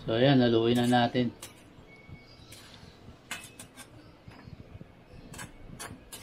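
A metal spoon scrapes and clanks against a pan.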